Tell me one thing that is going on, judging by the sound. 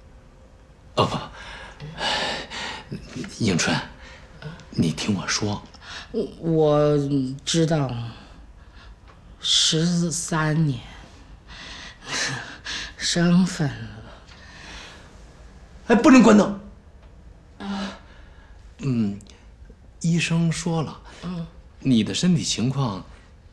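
A middle-aged man speaks urgently, close by.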